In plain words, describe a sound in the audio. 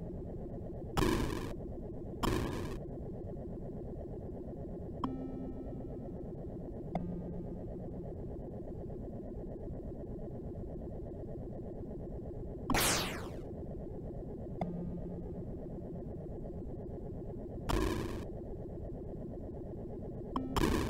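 Short bursts of harsh electronic noise blast now and then.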